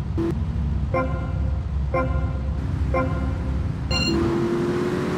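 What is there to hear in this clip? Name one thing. Short electronic beeps count down before a race starts.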